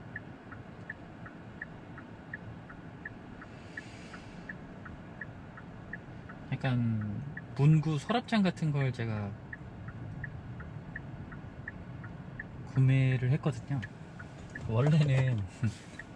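A car engine idles quietly.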